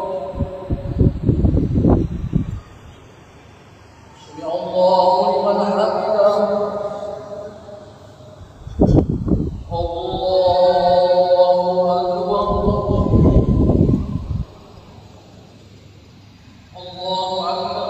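A man chants a prayer through a microphone in a large echoing hall.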